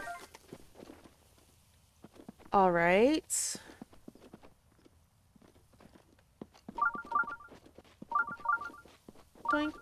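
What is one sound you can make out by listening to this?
Footsteps patter quickly over dirt and grass.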